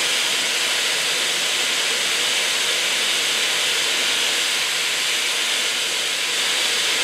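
An old car engine runs with a steady roar.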